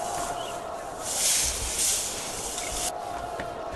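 A blade swishes sharply through tall grass.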